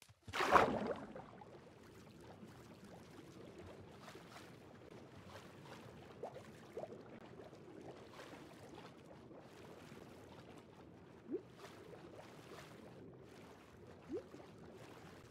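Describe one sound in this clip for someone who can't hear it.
A muffled underwater ambience rumbles and bubbles.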